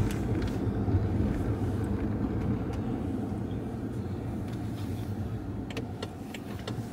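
A car's engine and tyres rumble low and steadily from inside the car.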